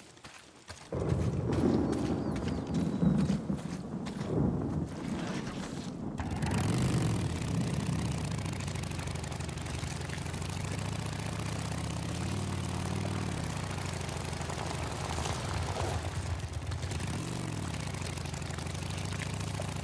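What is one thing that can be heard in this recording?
A motorcycle engine starts and rumbles steadily, revving as the bike rides off-road.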